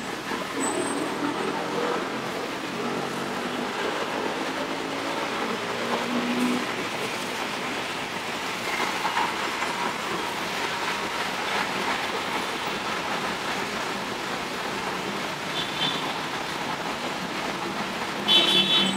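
Car engines idle and rumble in slow traffic.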